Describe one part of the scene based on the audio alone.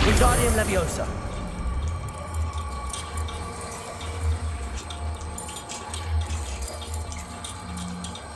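A magical swirl hums and whooshes with a low rumble.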